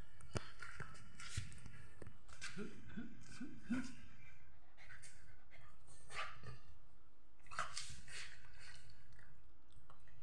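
A dog's body rubs and scrapes on a hard floor.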